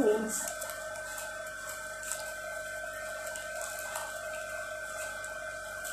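A plastic bag rustles as food is unwrapped.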